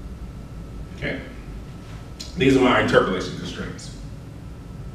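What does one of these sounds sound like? A man speaks briefly.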